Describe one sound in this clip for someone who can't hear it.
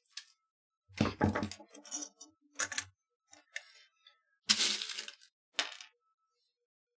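Small metal parts click and clatter on a wooden table.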